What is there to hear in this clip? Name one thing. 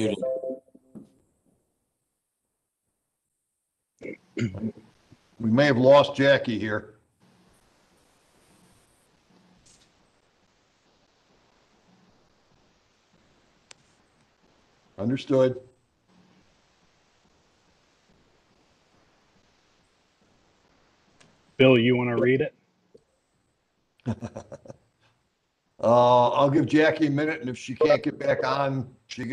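A man speaks calmly over an online call, in short bursts with pauses.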